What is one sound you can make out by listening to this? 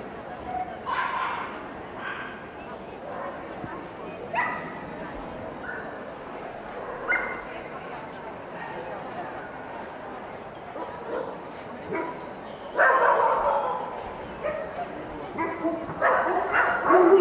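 Men and women chat nearby in a large echoing hall.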